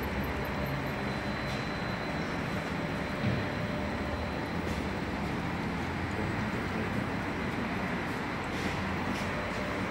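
Oil trickles steadily into a drain pan.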